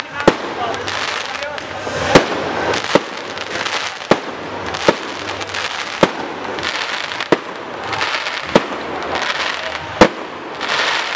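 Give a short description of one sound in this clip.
Fireworks bang loudly overhead.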